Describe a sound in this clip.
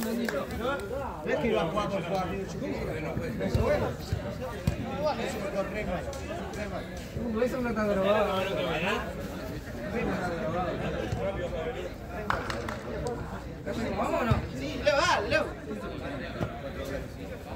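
Young men call out to each other outdoors.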